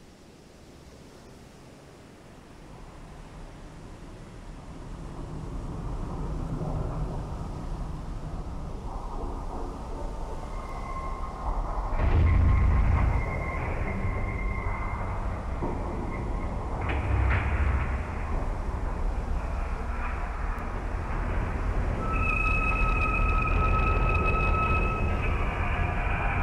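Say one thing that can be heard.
Water churns and sloshes around a sinking ship.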